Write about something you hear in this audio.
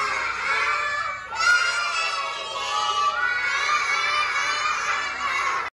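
Young children shout and chatter excitedly all at once, close by.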